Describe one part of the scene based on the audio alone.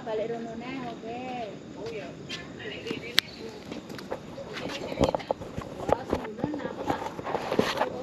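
A young woman calls out nearby.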